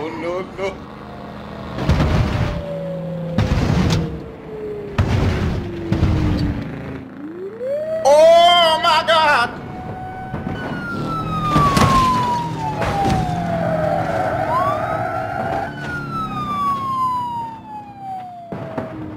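A police siren wails, falling and rising in pitch.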